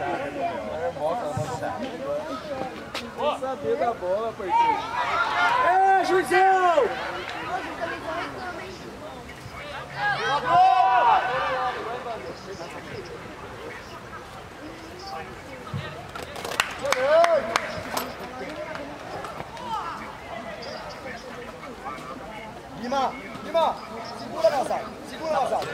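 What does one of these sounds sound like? Young players shout and call out to each other across an open field outdoors.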